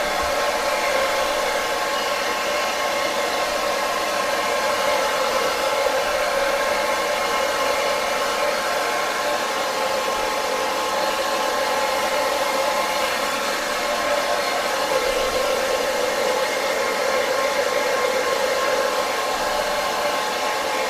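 A hair dryer blows with a steady, loud whir close by.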